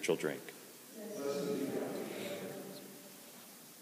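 A man chants a short sung phrase in a large echoing hall.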